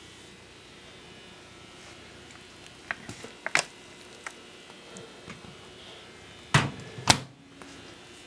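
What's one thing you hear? Plastic cup lids click and rustle as they are handled close by.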